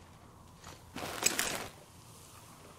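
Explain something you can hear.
A paper map rustles as it is lifted.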